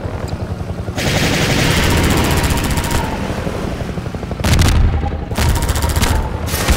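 Rockets whoosh as they launch.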